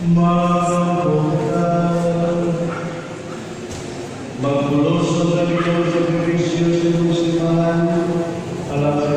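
A crowd of people sings slowly together in a large echoing hall.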